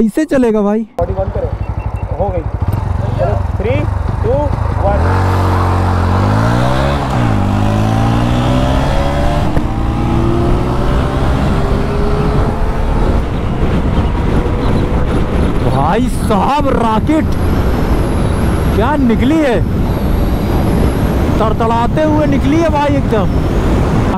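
Wind rushes loudly past a fast-moving rider.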